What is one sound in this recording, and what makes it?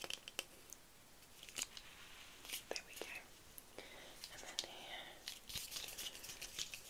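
Fingers tap and squeeze a soft rubber object close by, with crisp clicks and squeaks.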